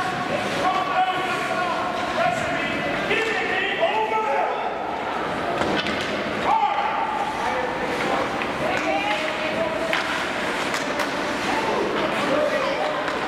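Spectators call out and shout in a large echoing arena.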